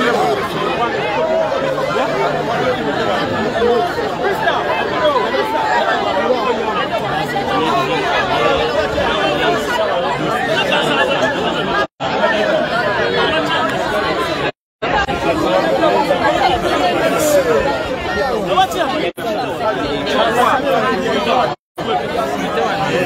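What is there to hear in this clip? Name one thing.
A crowd of men and women talks loudly all at once, close by.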